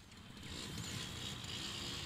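A motorcycle engine hums past at low speed.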